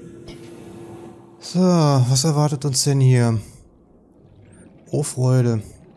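Air bubbles gurgle and rise through water.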